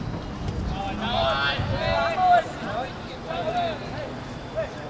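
Young men shout to each other outdoors across a football pitch.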